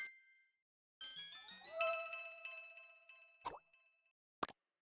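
A cheerful rising jingle plays and rings out.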